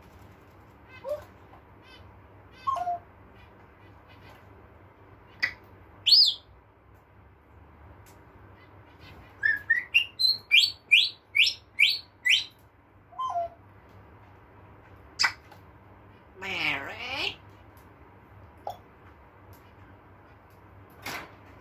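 A parrot whistles and chirps in short bursts close by.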